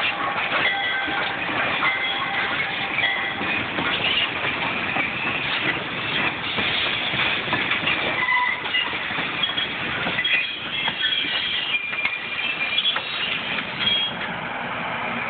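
Metal wheels squeal faintly against the rails.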